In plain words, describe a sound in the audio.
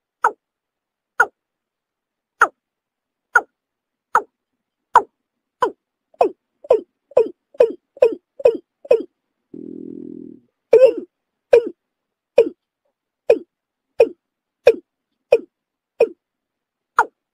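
A bird calls with short, sharp notes, over and over.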